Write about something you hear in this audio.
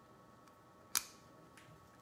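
Nail clippers snip with a sharp click.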